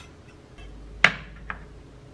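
A knife clicks against a wooden board.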